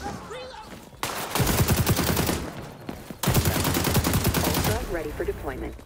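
An automatic rifle fires in two rapid bursts.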